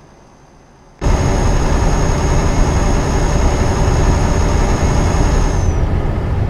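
A truck engine drones loudly from inside the cab.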